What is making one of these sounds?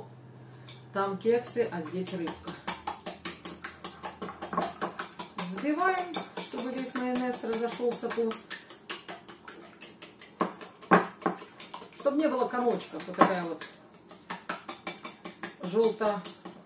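A fork clicks rapidly against a plate as eggs are beaten.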